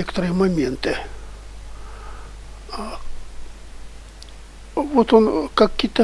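An older man speaks with animation into a headset microphone, close by.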